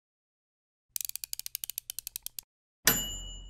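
A ceramic cup clicks rapidly as it is turned.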